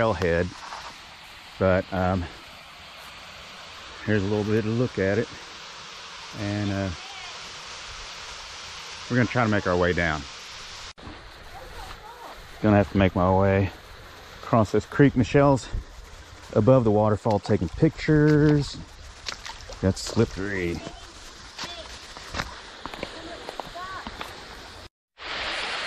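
A shallow stream trickles and gurgles over rocks.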